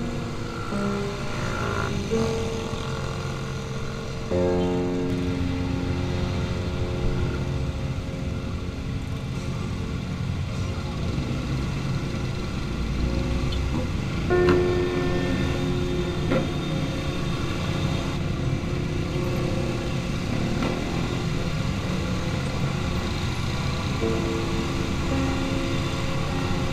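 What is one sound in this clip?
Many motorcycle engines rumble and drone close by, steadily throughout.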